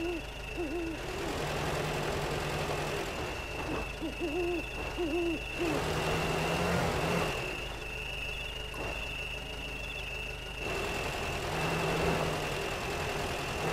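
An engine revs hard in bursts.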